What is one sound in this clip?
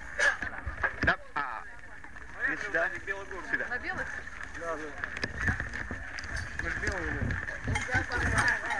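A crowd of adults talks outdoors.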